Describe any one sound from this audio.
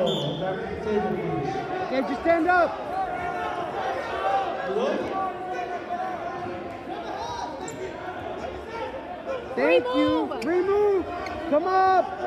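A crowd cheers and shouts loudly in a large echoing gym.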